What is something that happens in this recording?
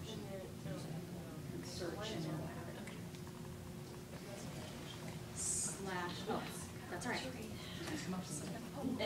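A woman speaks with animation to a group, heard from across the room.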